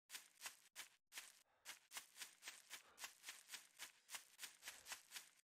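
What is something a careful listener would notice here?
Quick footsteps swish through tall grass at a steady running pace.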